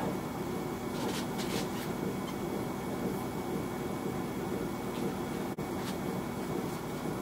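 Footsteps thud softly on a rubber floor.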